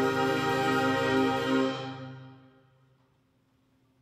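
A band holds a final chord that rings out and fades in a large echoing hall.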